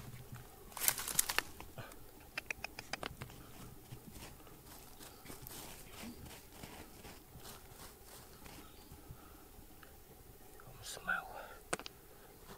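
Loose stones and dirt rattle as a hand picks through them.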